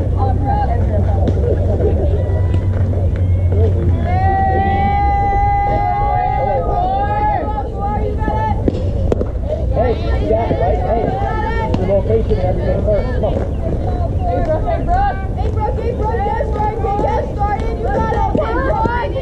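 Young women and girls shout and cheer outdoors.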